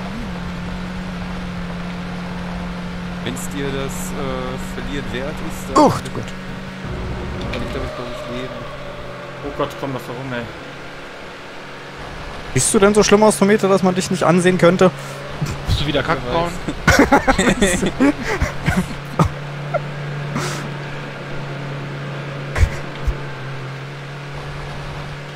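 A race car engine hums steadily at high speed.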